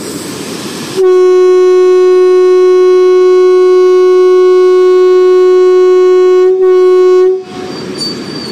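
A train horn blares loudly and steadily.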